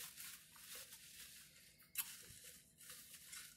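Paper crinkles and rustles in a woman's hands.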